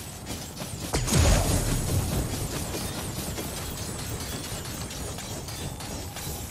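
Flames whoosh up and crackle.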